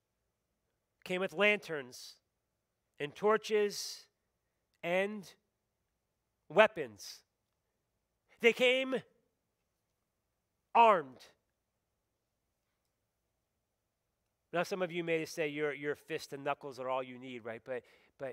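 A middle-aged man speaks calmly into a microphone in short phrases with pauses.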